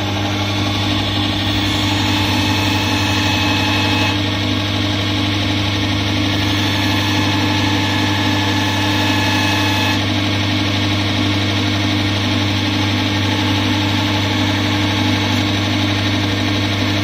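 A blade grinds against a spinning wheel with a harsh scraping hiss.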